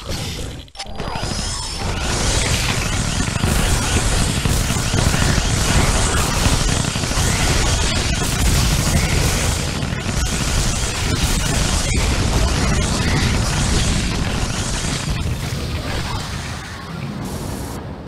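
Gunfire rattles rapidly in a loud battle.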